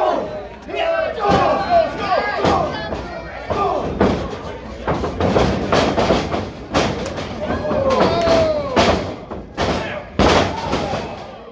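Chops and strikes smack on bare skin.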